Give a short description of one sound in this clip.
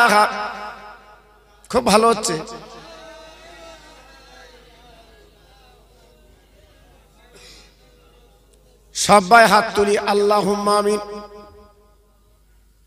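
An elderly man speaks through a microphone in bursts, his voice echoing in a large hall.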